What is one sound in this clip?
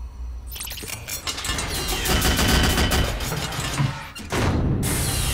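A heavy metal door rumbles and grinds open.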